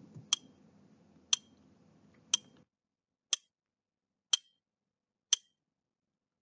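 A timer ticks once each second.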